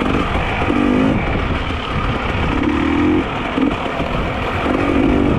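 Bike tyres crunch and rattle over a rocky dirt trail.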